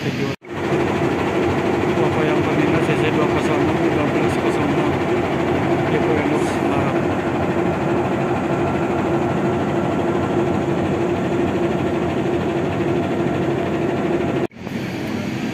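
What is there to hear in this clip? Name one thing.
A diesel locomotive engine rumbles steadily nearby.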